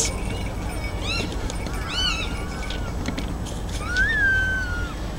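A hawk cries out repeatedly in sharp, gliding calls.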